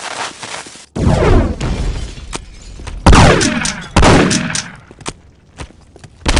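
A fire bursts into flames with a roaring whoosh.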